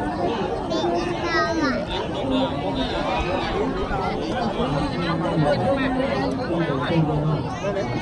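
A large outdoor crowd of men and women chatters and calls out nearby.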